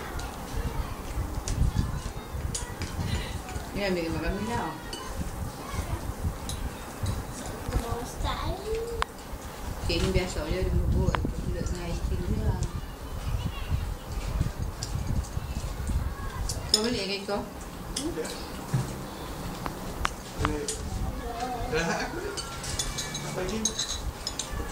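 Cutlery clinks against plates.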